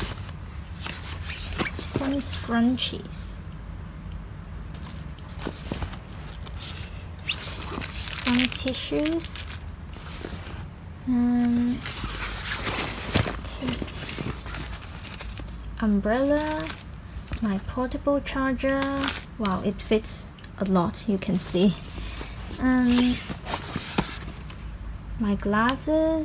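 Fabric rustles as a bag is rummaged through.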